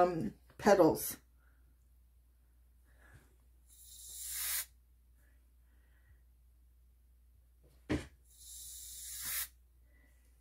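A plastic squeeze bottle hisses and sputters as paint is pressed out.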